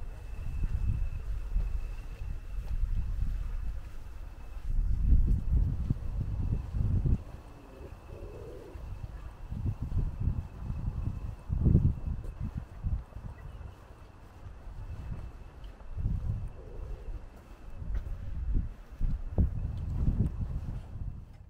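Footsteps walk along a paved path outdoors.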